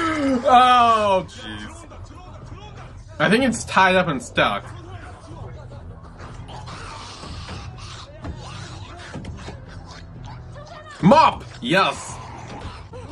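A young man exclaims loudly and with animation, close to a microphone.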